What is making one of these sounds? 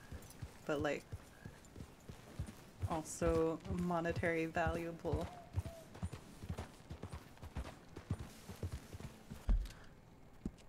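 A horse's hooves thud steadily on soft ground.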